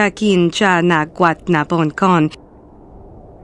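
A young woman speaks slowly and with regret, close by.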